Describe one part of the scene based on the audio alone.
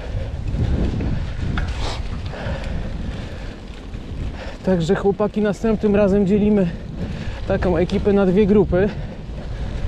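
Bicycle tyres rattle and rumble over cobblestones.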